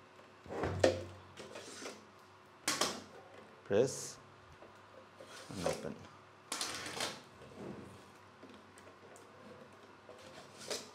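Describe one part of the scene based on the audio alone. Plastic drive trays slide and click out of a metal enclosure.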